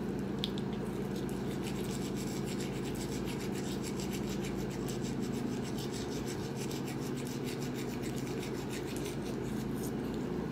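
A toothbrush scrubs against a small dog's teeth.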